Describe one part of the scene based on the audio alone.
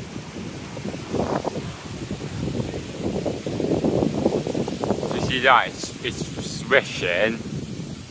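Strong wind buffets the microphone with a low, gusty rumble.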